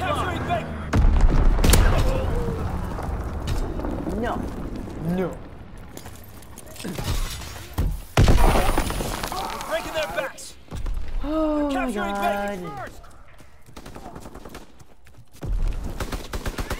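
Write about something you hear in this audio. Rifle shots bang sharply now and then.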